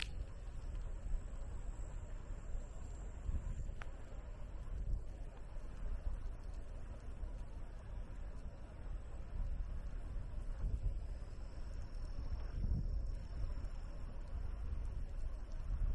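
Tyres roll steadily on a paved path.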